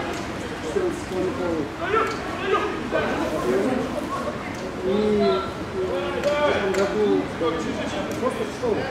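Several men talk and argue nearby outdoors.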